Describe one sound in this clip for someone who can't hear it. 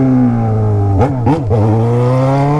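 A motorcycle engine blips sharply twice.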